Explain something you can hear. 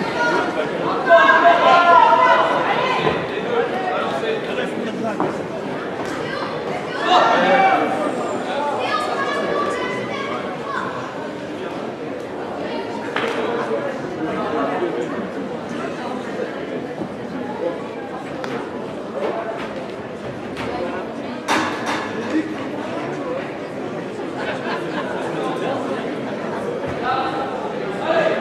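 A crowd cheers and chatters loudly in a large echoing hall.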